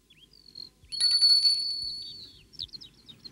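A shop doorbell rings.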